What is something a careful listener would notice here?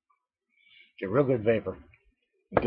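A middle-aged man speaks briefly and calmly, close to a microphone.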